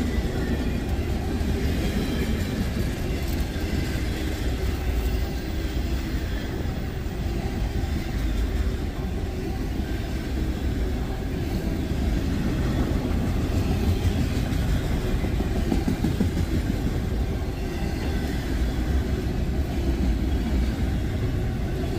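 A long freight train rumbles and clatters past close by.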